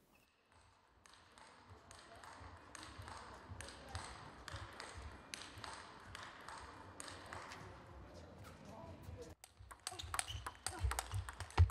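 Table tennis balls click against paddles and a table at a quick, steady pace.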